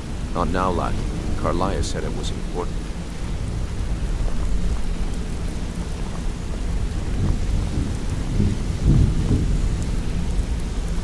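Water flows and splashes softly nearby.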